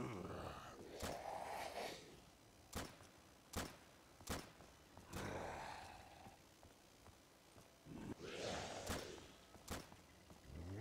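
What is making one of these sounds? A gun fires single sharp shots.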